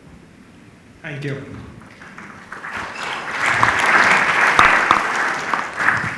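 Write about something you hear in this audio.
A middle-aged man speaks into a microphone, heard through a loudspeaker in an echoing room.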